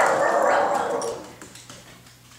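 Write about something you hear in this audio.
Several dogs howl loudly together, close by.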